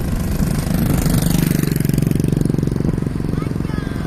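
A motorcycle engine rumbles close by as it passes.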